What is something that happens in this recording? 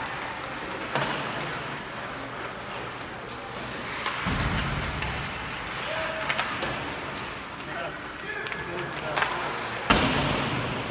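Hockey sticks clack sharply against the puck.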